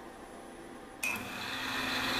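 A small milling machine starts up and whirs steadily, growing louder.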